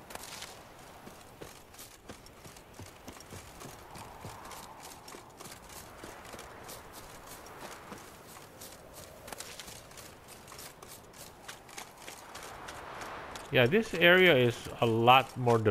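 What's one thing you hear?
Quick footsteps run over grass and dirt.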